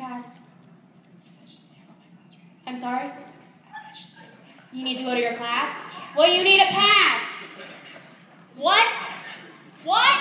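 A young girl speaks through a microphone and loudspeaker.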